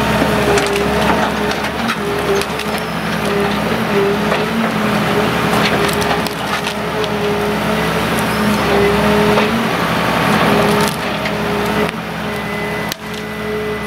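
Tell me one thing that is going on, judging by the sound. Branches crackle and snap as they are dragged and crushed.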